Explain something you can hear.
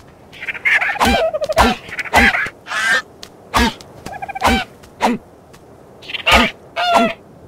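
A stone pick strikes with repeated dull thuds.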